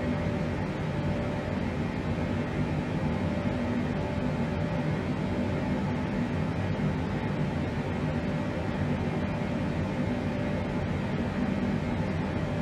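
Jet engines drone steadily with a low, constant rumble.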